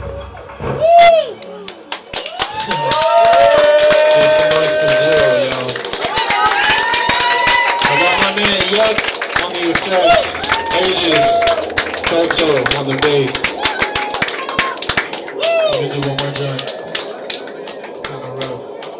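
A crowd of young men and women shouts and cheers loudly close by.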